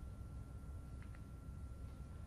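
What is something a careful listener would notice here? A cue strikes a snooker ball with a soft click.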